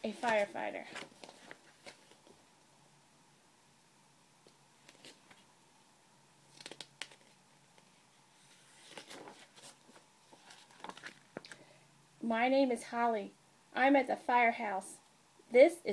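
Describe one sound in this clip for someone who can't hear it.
A woman reads aloud close by, in a lively voice.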